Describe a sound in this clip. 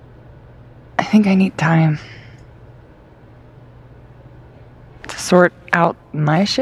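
A young woman speaks in a casual, rueful tone, close by.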